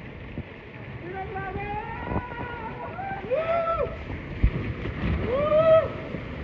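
People on a raft scream as they slide down.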